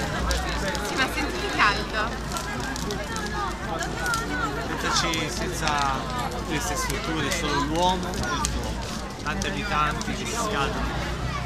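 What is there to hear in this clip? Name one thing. A bonfire roars and crackles.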